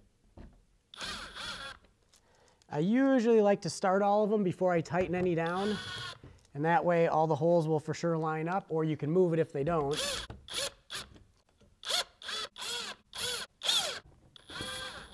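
A cordless impact driver rattles in short bursts.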